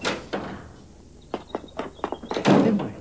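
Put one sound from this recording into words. Footsteps tap on a doorstep.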